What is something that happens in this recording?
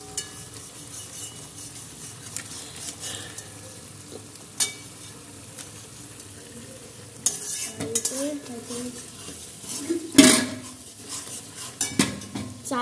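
A metal spoon clinks and scrapes against a pan.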